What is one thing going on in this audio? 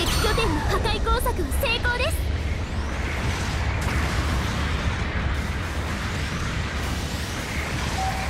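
A rocket thruster roars in bursts.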